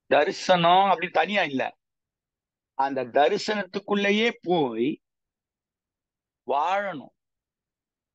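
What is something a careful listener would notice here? A middle-aged man speaks with animation through an online call, in short bursts with pauses.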